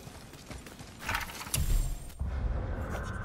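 A soft whoosh sounds as a book opens.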